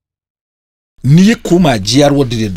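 A middle-aged man speaks emphatically into a close microphone.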